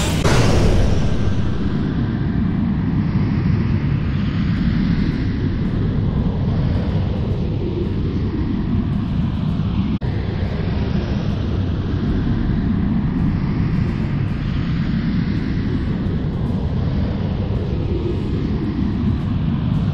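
A deep, steady rumbling hum drones on.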